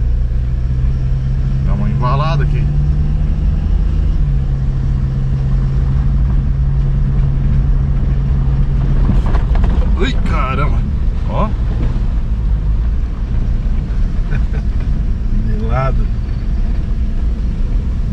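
Tyres rumble and crunch over a bumpy dirt road.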